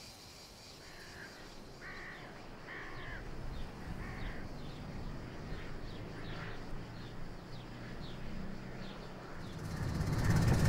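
A car engine drones in the distance.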